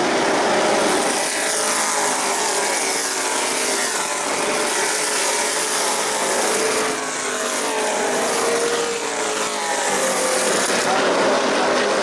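Race car engines roar as cars speed past on a track.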